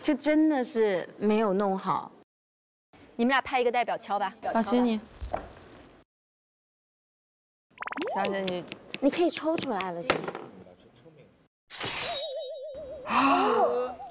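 A young woman talks with animation, close by.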